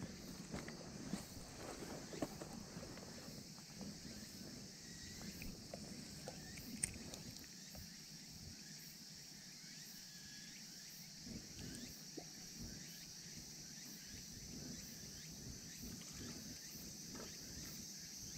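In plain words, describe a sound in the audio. A fishing reel clicks and rattles as it is handled close by.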